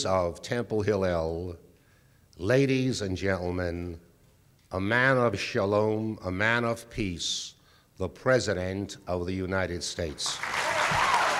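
An elderly man speaks slowly and firmly into a microphone in a large echoing hall.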